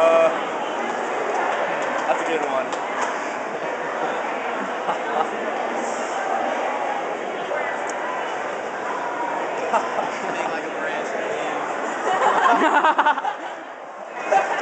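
A crowd of people chatters loudly nearby.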